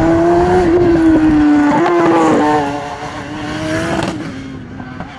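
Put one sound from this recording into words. A racing car engine roars loudly as it speeds past and shifts gears.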